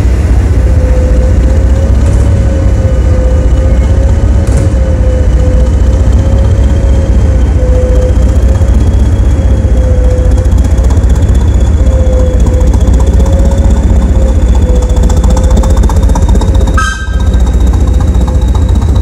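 A diesel-electric multiple unit's engine rumbles as the train pulls away.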